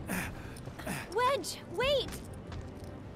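A young woman calls out urgently.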